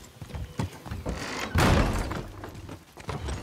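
A heavy wooden door creaks and swings open.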